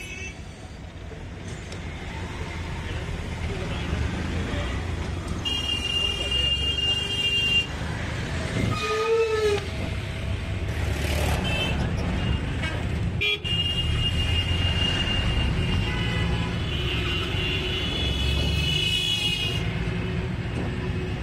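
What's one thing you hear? Traffic rumbles steadily along a busy road.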